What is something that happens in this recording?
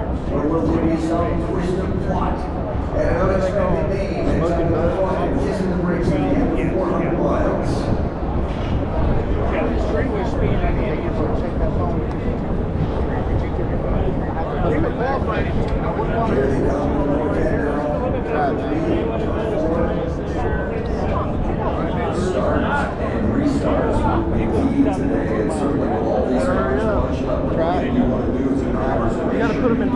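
A crowd of spectators chatters all around, close by.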